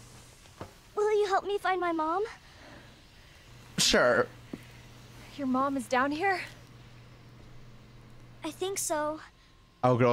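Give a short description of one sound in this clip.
A young girl speaks softly and timidly.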